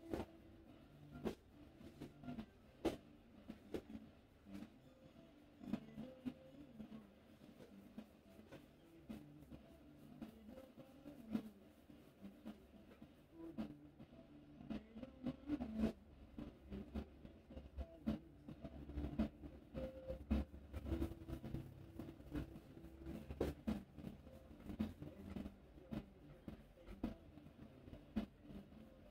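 Fingers rub and scrunch through damp hair close by.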